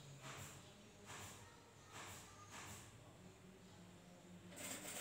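A sewing machine whirs steadily.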